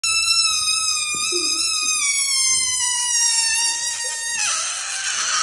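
A balloon squeals loudly as air is let out of its stretched neck, the pitch slowly falling.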